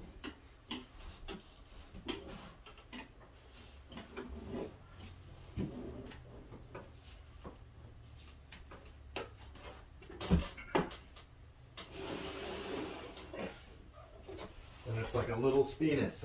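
Small knocks and scrapes sound as men handle a wooden panel.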